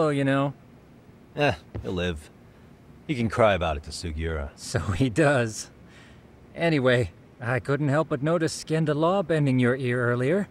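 A second man answers calmly and close by.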